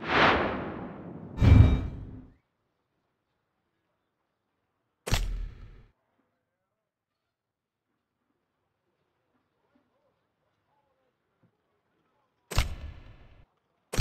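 Short game sound effects chime with each menu action.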